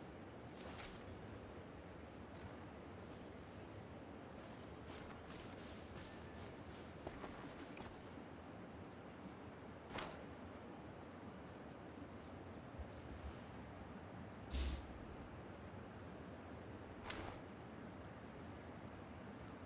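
Footsteps rustle through dry grass.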